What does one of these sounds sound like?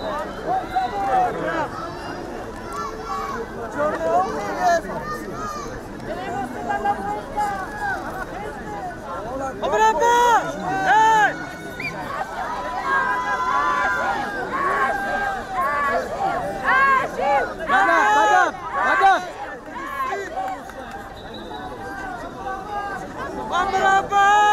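A crowd of men chatter and call out close by, outdoors.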